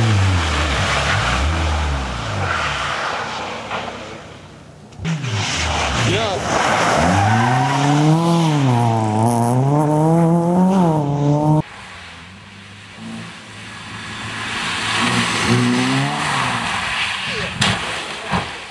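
Tyres hiss and splash through slush.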